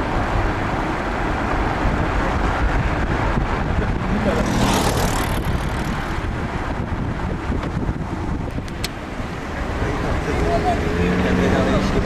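Car engines hum as cars drive close by on a road.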